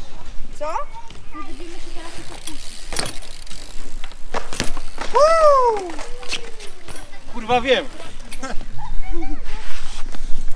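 Bicycle tyres roll and rattle on concrete.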